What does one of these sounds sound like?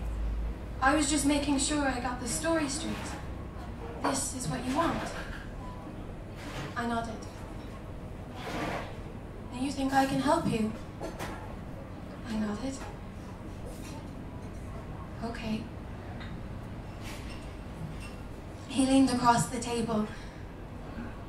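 A young woman speaks calmly into a microphone, in short phrases with pauses.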